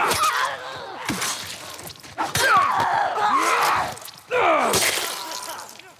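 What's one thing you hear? Heavy blows thud and smack against flesh.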